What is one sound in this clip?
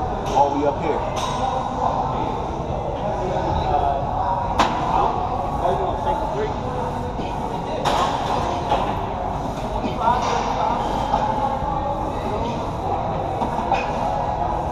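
Weight plates clank sharply now and then.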